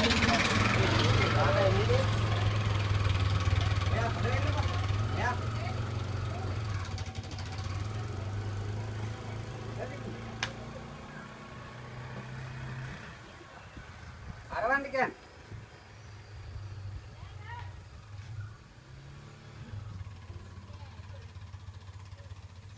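An auto-rickshaw engine putters and slowly fades as it drives away.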